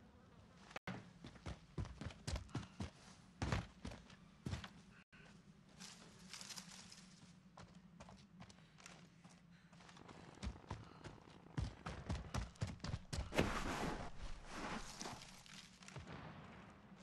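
Footsteps thud quickly on the ground while running.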